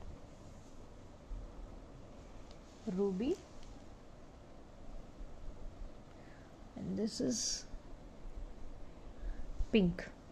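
Metal earrings clink softly as they are set down.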